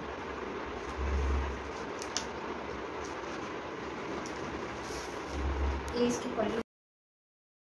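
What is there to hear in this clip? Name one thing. Fabric rustles as it is folded and unfolded.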